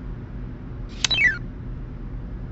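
A falling electronic chime sounds as a tile is placed.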